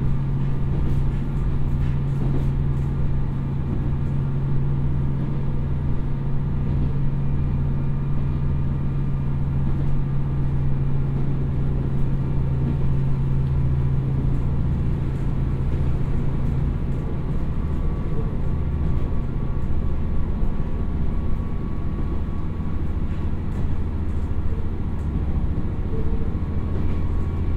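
A diesel train engine rumbles steadily and deeply.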